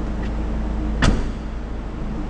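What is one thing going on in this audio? A car's tailgate slams shut with a thud.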